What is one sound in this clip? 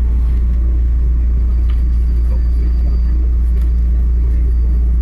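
A train's engine hums low and steady close by.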